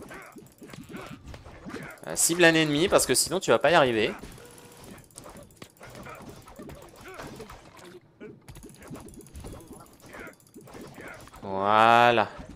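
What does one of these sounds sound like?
Blows and magic attacks hit with sharp bursts.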